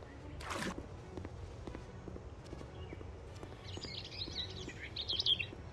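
Water splashes as a swimmer moves through it.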